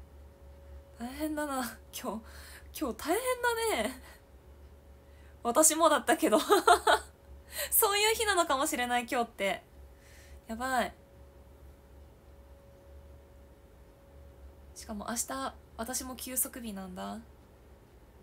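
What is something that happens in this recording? A young woman talks animatedly and close by, in short bursts.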